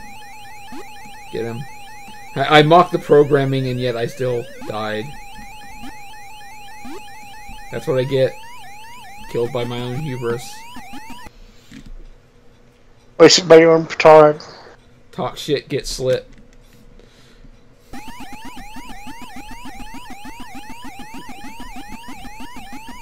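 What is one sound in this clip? An electronic arcade game siren warbles in quick, repeating rising sweeps.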